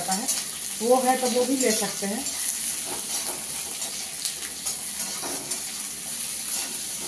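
Vegetables sizzle steadily in a hot pan.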